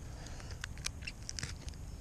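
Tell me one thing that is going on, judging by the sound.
Scissors snip through fish.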